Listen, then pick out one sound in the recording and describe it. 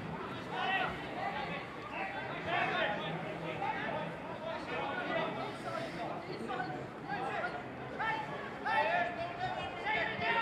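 Young men call out to each other from a distance outdoors.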